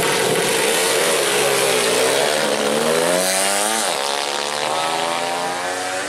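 Motorbikes accelerate hard and roar away down a track.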